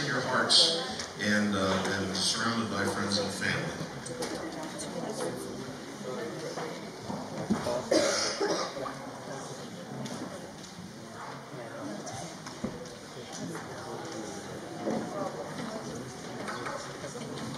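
A middle-aged man preaches with animation through a microphone in an echoing hall.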